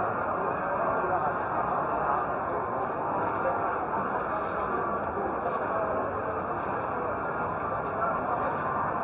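A large crowd of men and women chatter all around in a big echoing hall.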